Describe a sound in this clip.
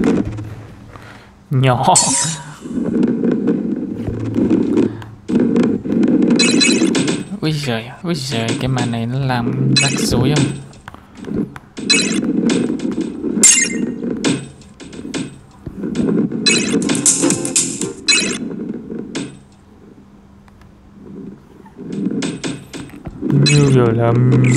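A mobile game plays sound effects through a tablet's speaker.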